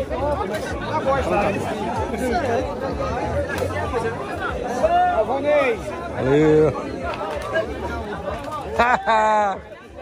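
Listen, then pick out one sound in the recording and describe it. Several men talk at once with animation, close by.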